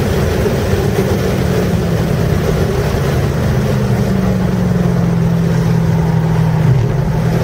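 A car engine drops in pitch as the car slows down.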